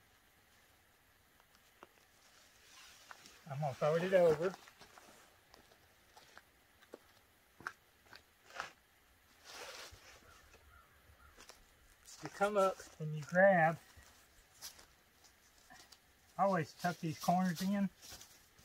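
Tent fabric rustles and crinkles on the ground.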